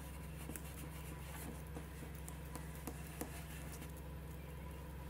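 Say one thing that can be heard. Hands rub and brush across paper.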